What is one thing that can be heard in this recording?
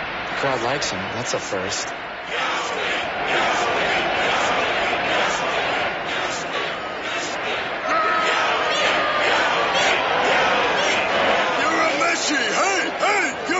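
A large crowd cheers and shouts loudly.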